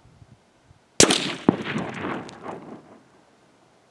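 A single gunshot cracks loudly and echoes away.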